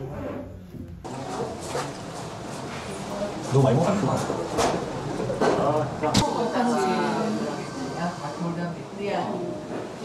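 A young woman talks cheerfully close by.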